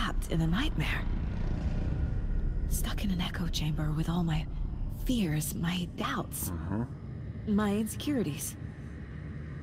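A young woman speaks quietly and anxiously, close by.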